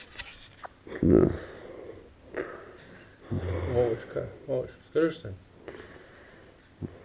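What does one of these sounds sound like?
A man snores softly while asleep.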